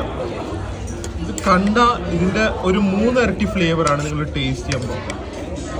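A metal fork scrapes and clinks against a pan.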